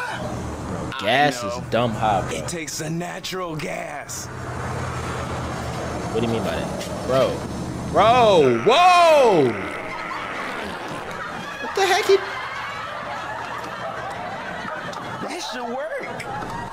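A young man talks excitedly and shouts.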